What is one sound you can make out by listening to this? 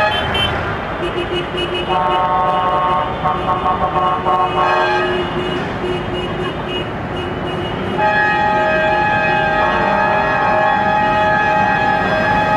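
A tractor engine rumbles loudly as the tractor drives closer along the street.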